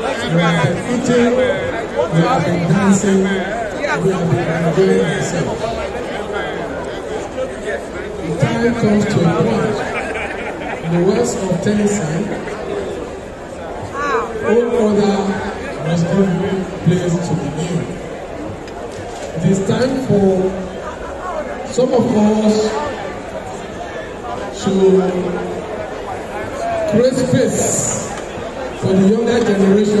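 A crowd of guests chatters in a large hall.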